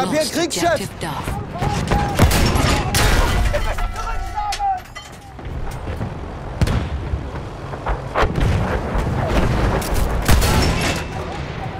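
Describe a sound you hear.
Explosions boom in the distance.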